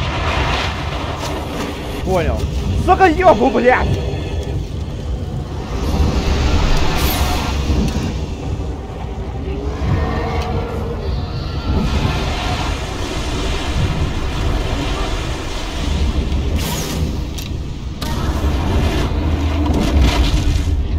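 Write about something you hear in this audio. Fires roar and crackle.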